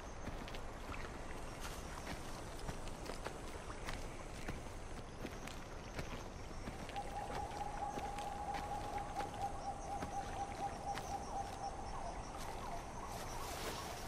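Footsteps rustle softly through dry grass and brush.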